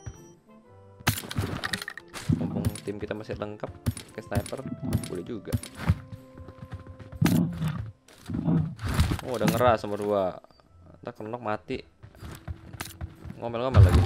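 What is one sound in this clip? A young boy talks with animation into a microphone.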